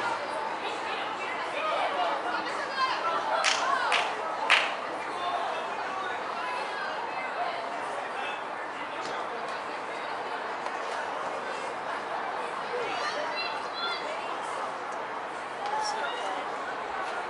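Young women call out to each other across an open outdoor field.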